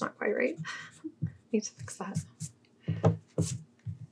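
A hand rubs across a sheet of paper.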